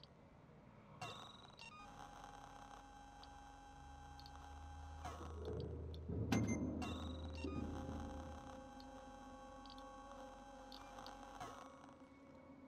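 Menu beeps and clicks sound in a game.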